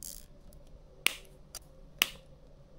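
Pliers snip a cable tie with a sharp click.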